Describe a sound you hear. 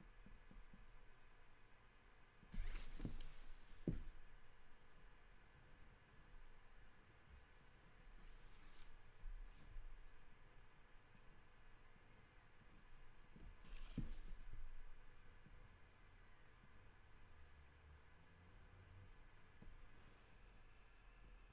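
A pen scratches and squeaks on paper.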